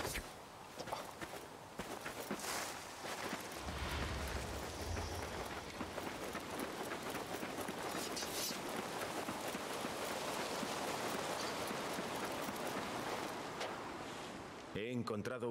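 Footsteps run quickly over sand.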